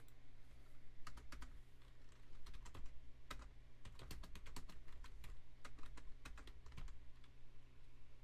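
Keys click as someone types on a keyboard.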